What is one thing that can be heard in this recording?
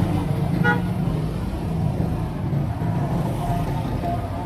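An auto-rickshaw engine putters along.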